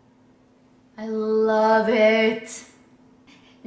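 A woman speaks close to a microphone in a lively, sing-song way.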